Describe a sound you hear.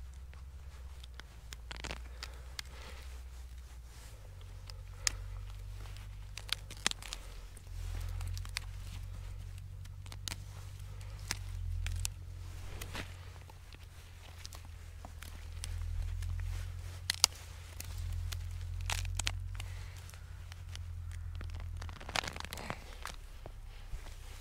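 Gloved hands pull roots from soil, with soft crackling and rustling.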